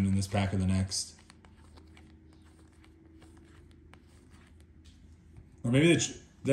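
Trading cards slide and flick against each other in a hand.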